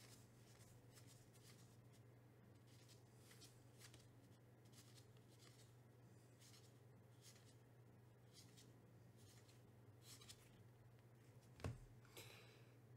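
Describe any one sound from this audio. Trading cards shuffle and slide against each other in a pair of hands.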